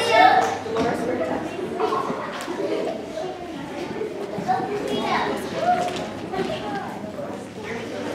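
A woman speaks to the children.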